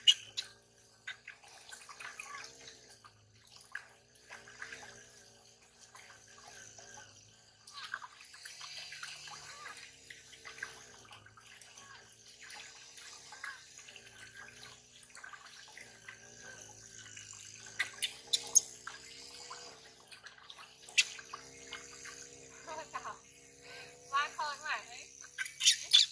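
Water splashes and sloshes in a metal basin.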